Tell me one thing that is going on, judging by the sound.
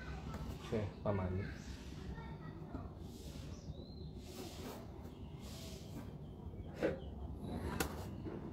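A plastic spatula scrapes and taps against a plastic tray.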